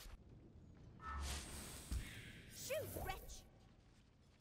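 A magical whoosh bursts loudly and fades.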